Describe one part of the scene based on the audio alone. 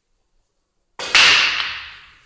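A cue strikes a rack of billiard balls with a sharp crack.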